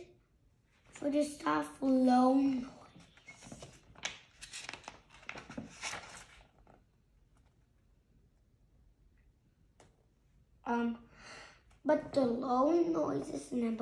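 A young boy reads aloud from a book, close by.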